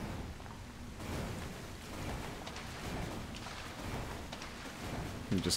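Water splashes loudly as someone runs through it.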